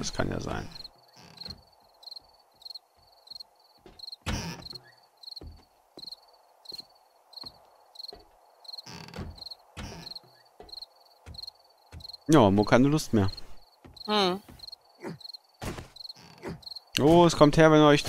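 Footsteps tap steadily on wooden boards.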